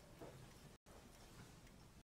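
A pendulum clock ticks softly.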